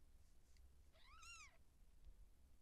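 A newborn kitten gives a thin, high mew.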